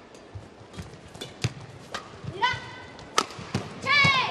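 Badminton rackets strike a shuttlecock back and forth in a quick rally.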